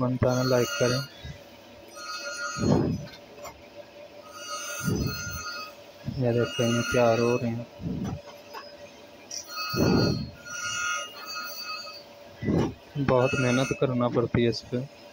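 A grinding wheel screeches against metal in repeated short bursts.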